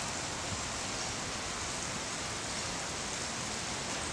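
Wind rustles through palm leaves and trees.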